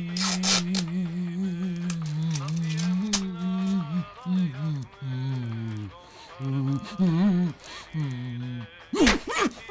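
A man groans and moans through a gagged mouth.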